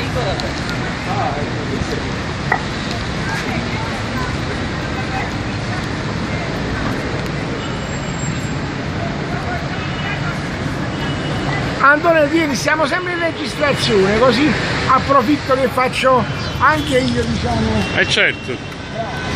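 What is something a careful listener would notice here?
A steady hum of a busy street fills the air outdoors.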